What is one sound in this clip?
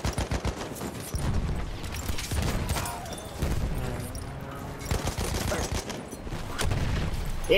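Gunshots crack rapidly, one after another.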